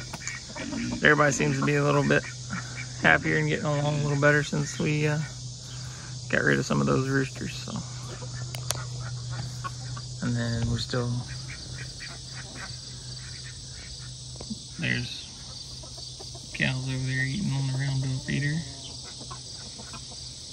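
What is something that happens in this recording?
Hens cluck and murmur nearby.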